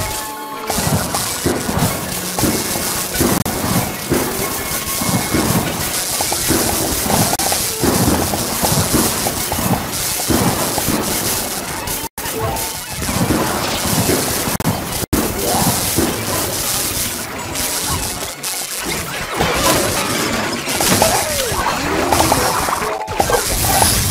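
Game sound effects of zaps, pops and bursts go off rapidly and constantly.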